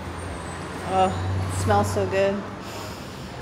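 A young woman talks briefly nearby.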